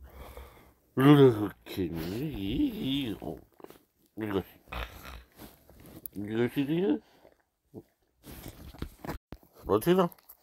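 A dog whines and yowls up close in short wavering bursts.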